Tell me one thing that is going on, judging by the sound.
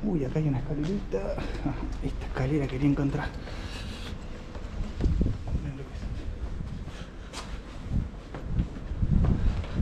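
Footsteps scuff on concrete steps.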